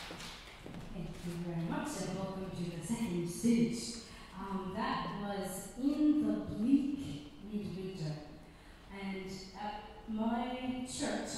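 A woman speaks calmly into a microphone through loudspeakers.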